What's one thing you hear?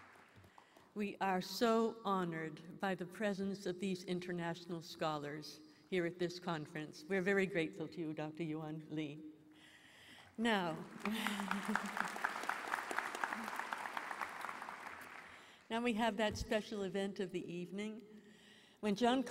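A middle-aged woman speaks warmly through a microphone.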